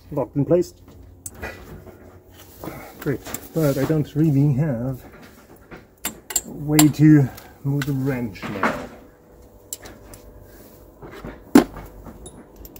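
Metal tools clink and click against engine parts.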